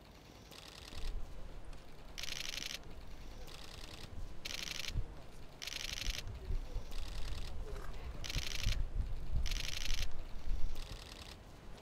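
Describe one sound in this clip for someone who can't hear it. Boots tread on stone paving in slow steps.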